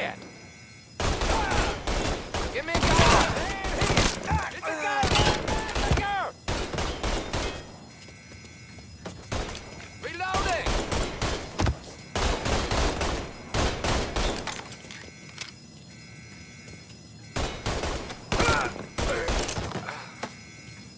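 A rifle fires in rapid bursts of gunshots, echoing in an enclosed space.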